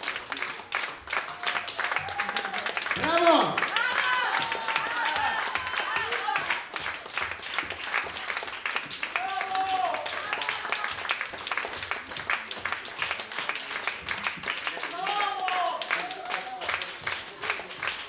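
A crowd whistles and whoops.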